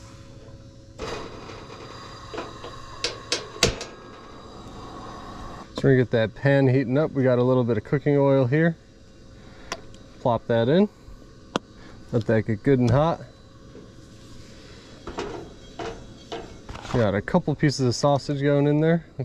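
A gas camp stove burner hisses steadily.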